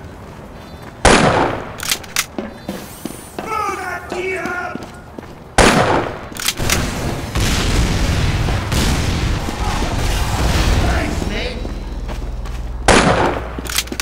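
A rifle fires loud single shots, one at a time.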